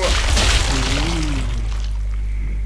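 A bullet strikes a body with a wet thud.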